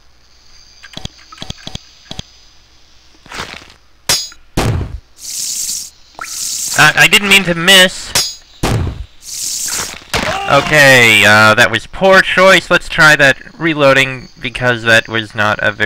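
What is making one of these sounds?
Fantasy game combat sounds clash and thud.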